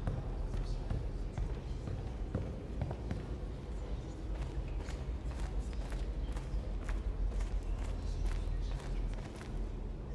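Footsteps echo across a large hall.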